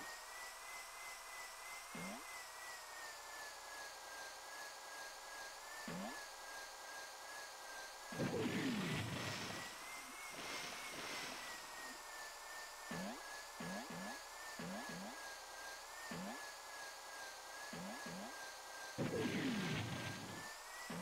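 A small engine hums steadily, rising and falling in pitch.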